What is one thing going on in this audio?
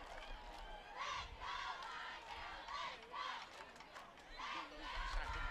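Young women chant and cheer together outdoors.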